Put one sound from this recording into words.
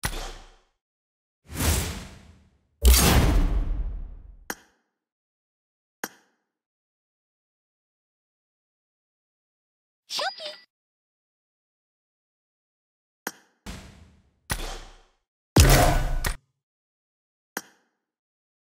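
Short menu sounds swoosh and chime now and then.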